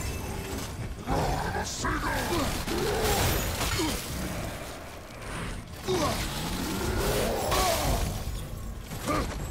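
Magic blasts burst and crash with loud booms.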